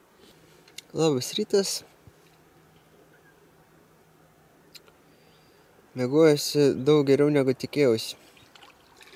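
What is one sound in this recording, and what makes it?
A young man talks calmly, close by.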